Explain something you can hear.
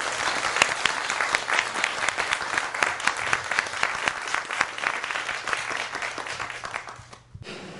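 A large audience applauds steadily, then the clapping dies away.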